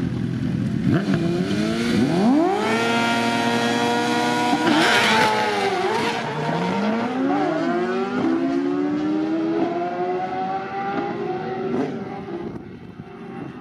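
Two drag racing motorcycles launch at full throttle and scream away through the gears, fading into the distance.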